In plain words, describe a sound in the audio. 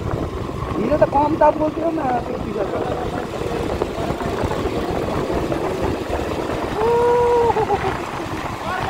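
A motorcycle engine hums steadily nearby.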